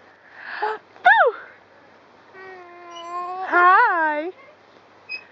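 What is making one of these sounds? A toddler squeals and coos happily close by.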